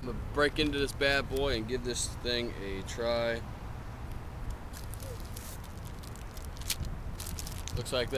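Plastic wrapping crinkles as it is peeled open.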